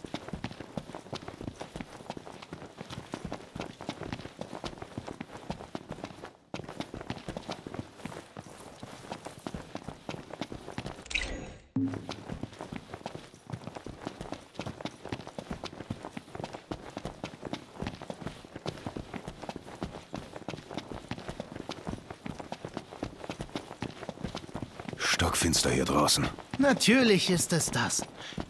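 Many quick footsteps crunch on gravel as several men run.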